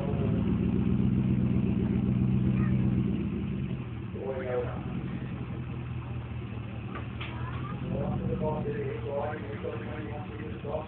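An off-road vehicle's engine rumbles loudly, then settles to a lower, steady running.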